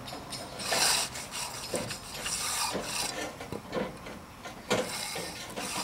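A trowel scrapes and swishes across wet concrete.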